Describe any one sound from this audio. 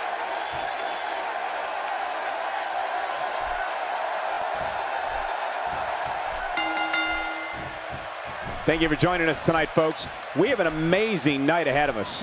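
A large crowd roars and cheers steadily in a big echoing arena.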